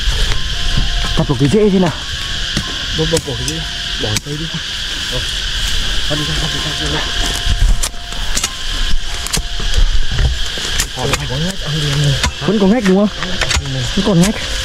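Men talk calmly outdoors.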